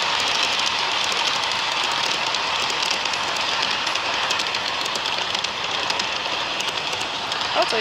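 A model train rumbles steadily along its track close by.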